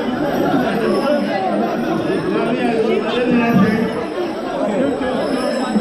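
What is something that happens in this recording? A drum beats in a steady rhythm.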